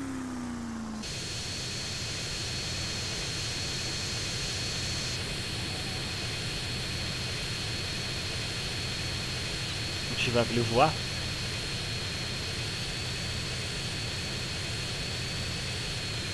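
A jet engine roars and whines steadily.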